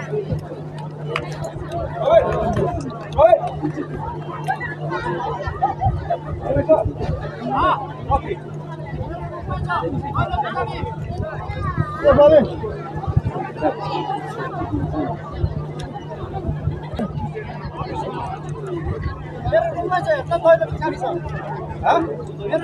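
A large crowd of spectators chatters and calls out outdoors.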